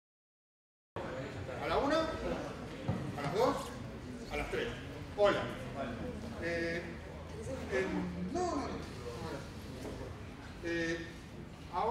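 A man speaks with animation into a microphone, heard over loudspeakers in a large hall.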